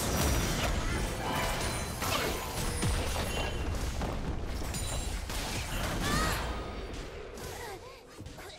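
Magic blasts and hits crackle in a fast video game fight.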